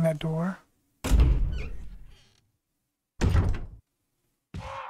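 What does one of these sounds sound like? A heavy door thuds shut with a booming echo.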